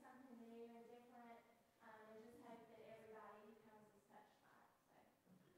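A young woman speaks calmly into a microphone.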